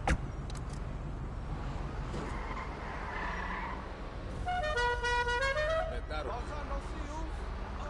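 A car engine hums low and steady as a sports car drives.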